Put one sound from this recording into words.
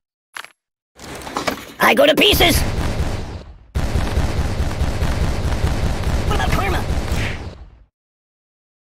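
Explosions boom and rumble in quick succession.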